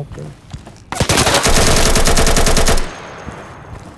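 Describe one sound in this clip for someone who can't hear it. A rifle fires a rapid burst.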